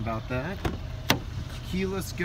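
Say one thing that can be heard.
A car door unlatches with a sharp click and swings open.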